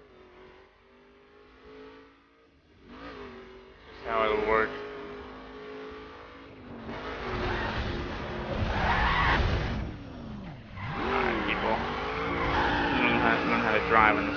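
A car engine revs and roars at speed.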